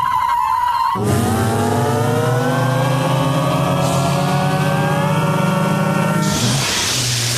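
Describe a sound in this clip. A racing car engine roars and climbs in pitch.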